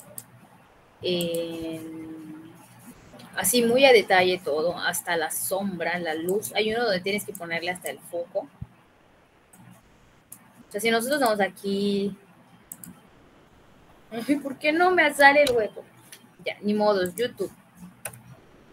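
A young woman speaks calmly through a computer microphone, in bursts with pauses.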